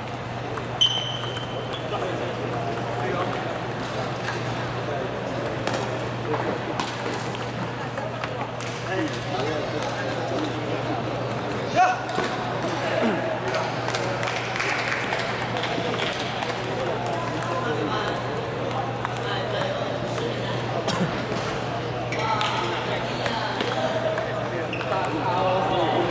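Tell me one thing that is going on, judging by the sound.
Men chatter in the distance.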